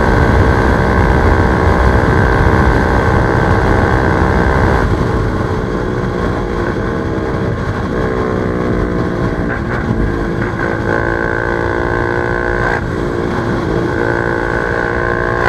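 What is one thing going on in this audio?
A motorcycle engine roars at high speed, its pitch dropping and climbing with gear changes.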